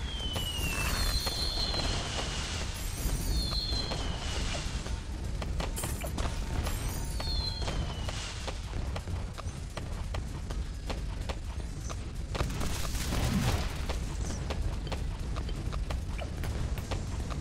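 Small balloons pop rapidly.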